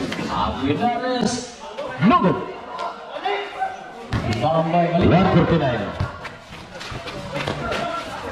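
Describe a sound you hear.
Young men shout and call out excitedly nearby.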